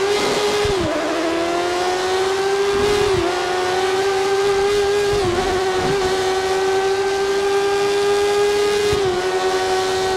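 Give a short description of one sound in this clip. A racing car's gears shift with short sudden drops in the engine's pitch.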